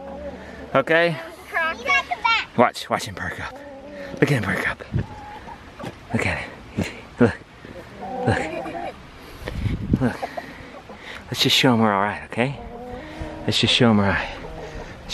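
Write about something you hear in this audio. A rooster clucks and makes warbling calls close by.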